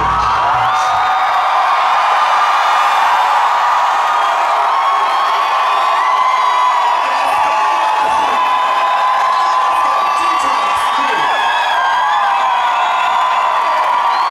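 Pop music plays loudly over speakers.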